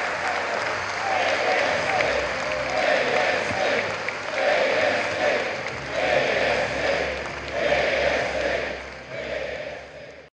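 A large crowd chants in rhythm.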